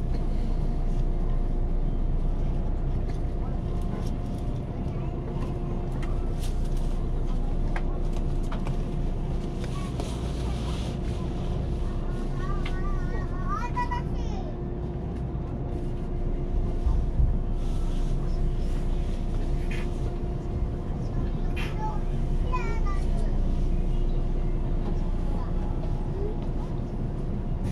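A train idles with a low steady hum.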